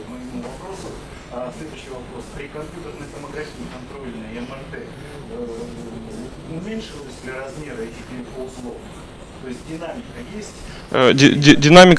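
A middle-aged man speaks from a distance in an echoing hall, without a microphone.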